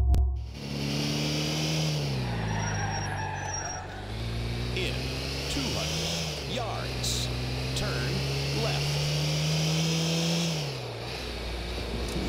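A young man talks into a nearby microphone.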